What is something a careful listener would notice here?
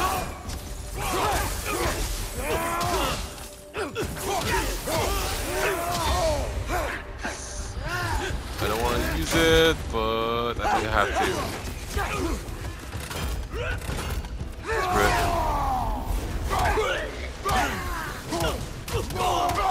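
Heavy blows strike with dull thuds.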